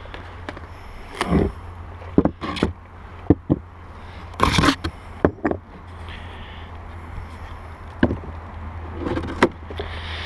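Concrete blocks scrape and clunk on a wooden hive lid.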